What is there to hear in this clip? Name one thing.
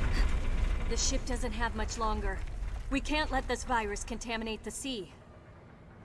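A woman speaks firmly and urgently.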